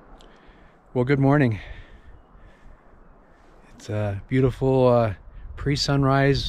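A middle-aged man speaks calmly close to the microphone, outdoors.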